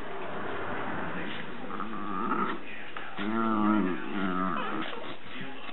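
A puppy whines and yelps.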